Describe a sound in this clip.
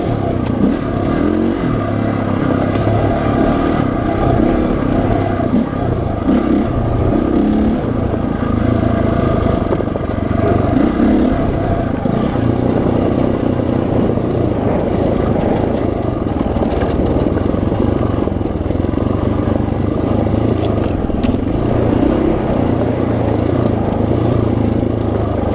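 A dirt bike engine drones and revs up and down close by.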